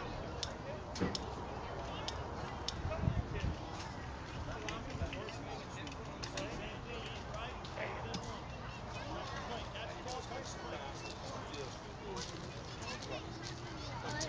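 Children call out and chatter in the distance.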